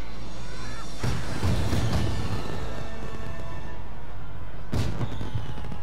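A spaceship engine roars past with a whoosh.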